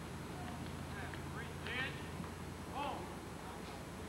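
A man calls out a loud command outdoors.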